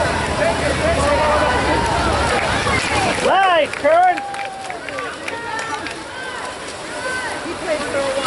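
Swimmers splash and churn the water.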